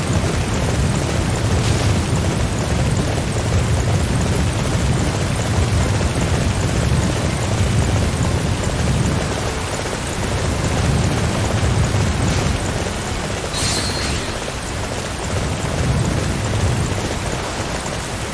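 Horse hooves gallop steadily on soft ground.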